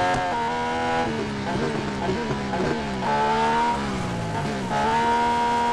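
A racing car engine whines down while braking into a corner.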